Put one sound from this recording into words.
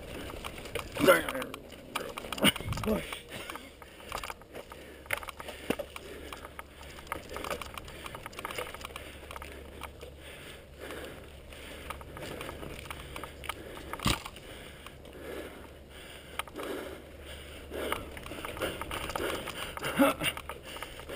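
A bicycle frame rattles and clanks over bumps.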